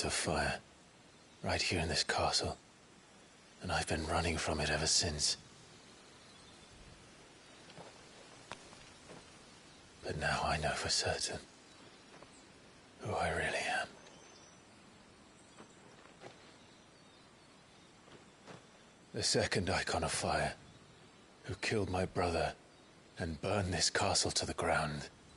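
A young man speaks calmly and earnestly, close by.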